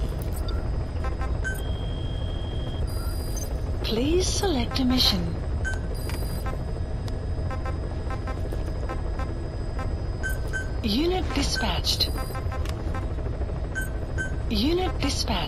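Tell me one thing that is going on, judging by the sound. Short electronic beeps sound as menu options are selected.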